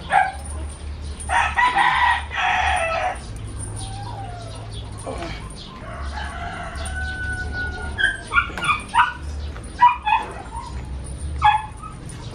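Metal chains clink and rattle as weights are lifted and lowered.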